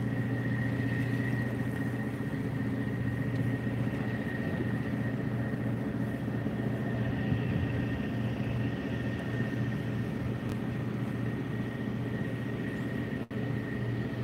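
Wind rumbles steadily across the microphone outdoors.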